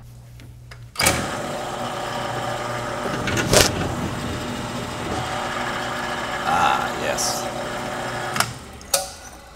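A drill press grinds steadily into metal.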